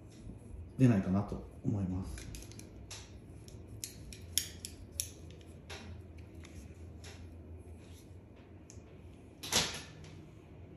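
A flat iron clicks and taps as it clamps shut.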